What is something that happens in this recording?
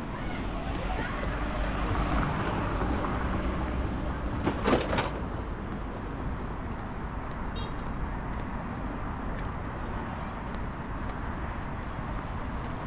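Traffic hums steadily along a street nearby.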